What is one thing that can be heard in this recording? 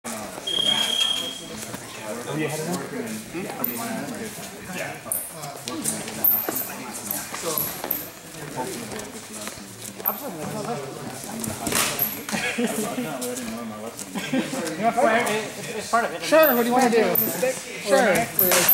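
Men talk and call out in an echoing hall.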